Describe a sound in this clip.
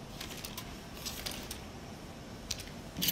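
A rifle is lifted with a metallic clack.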